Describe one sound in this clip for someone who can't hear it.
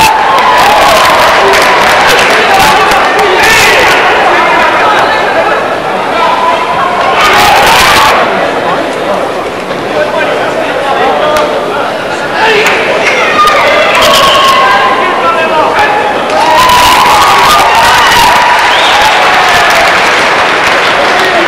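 A large crowd murmurs and shouts in an echoing hall.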